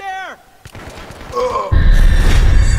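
A gunshot bangs sharply.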